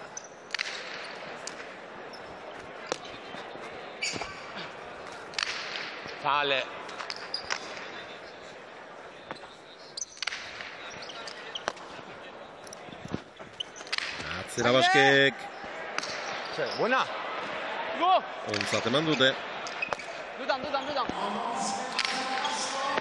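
A hard ball smacks against a wall and the floor again and again, echoing in a large hall.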